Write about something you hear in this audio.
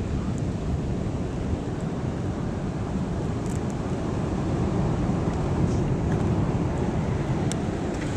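A plastic bag rustles and crinkles in hands.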